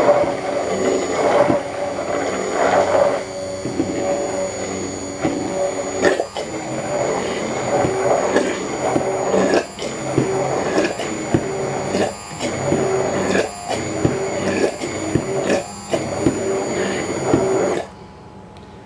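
A hand blender whirs steadily in a jar, then stops.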